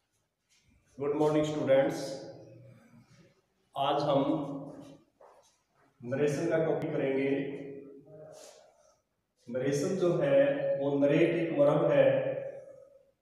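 A middle-aged man speaks clearly and deliberately, as if teaching, close by.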